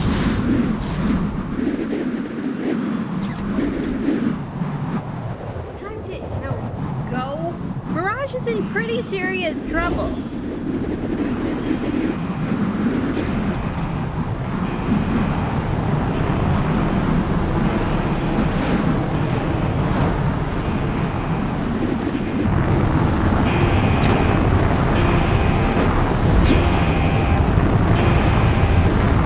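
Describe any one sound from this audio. A steady rushing whoosh of fast flight runs throughout.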